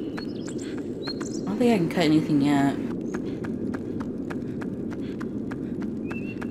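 Footsteps tap on stone in a quick, even rhythm.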